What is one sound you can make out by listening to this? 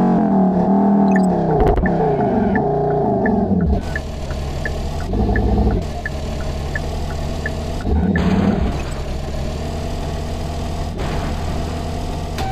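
A racing car engine hums and drones steadily.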